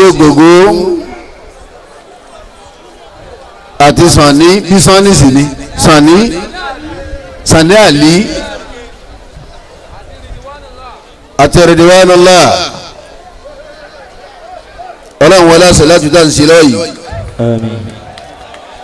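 A man sings loudly in short bursts through a microphone and loudspeakers outdoors.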